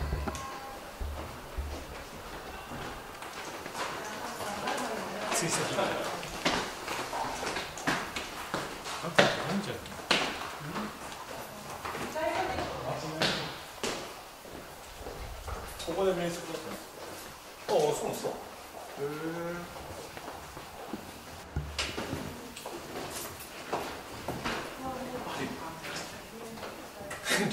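Footsteps tap and scuff on stairs and a hard floor.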